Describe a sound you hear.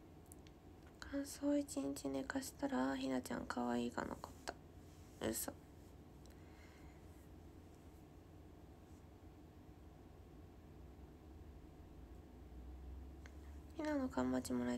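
A young woman speaks softly and casually close to a microphone.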